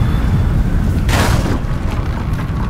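Wooden planks smash and splinter.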